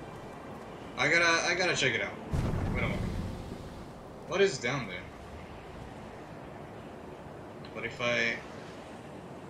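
A young man speaks casually into a close microphone, in short bursts.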